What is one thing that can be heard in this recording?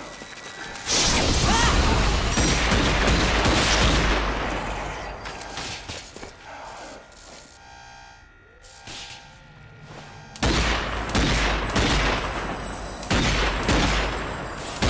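Pistol shots ring out in quick bursts.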